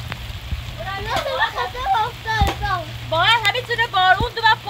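A young boy talks loudly and excitedly nearby.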